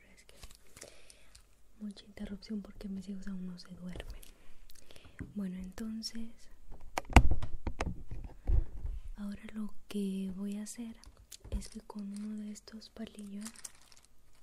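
Toothpicks rattle inside a plastic jar.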